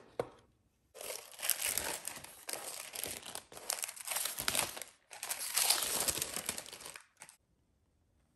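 Tissue paper crinkles and rustles loudly.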